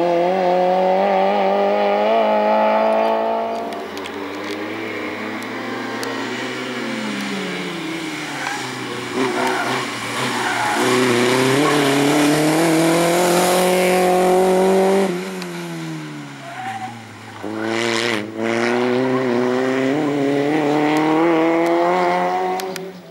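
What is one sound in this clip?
A small rally car's engine revs hard and roars as it speeds along a winding road.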